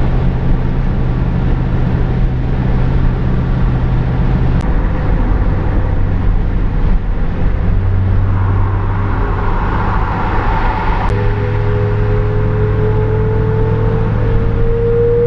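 Wind and road noise rush past an open car.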